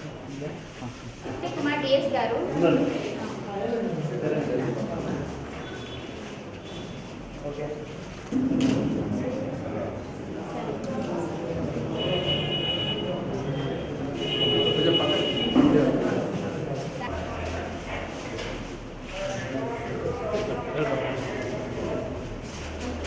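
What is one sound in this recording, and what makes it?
Several men and women talk nearby.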